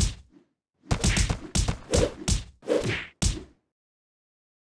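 Cartoon smacks and clangs ring out in quick bursts.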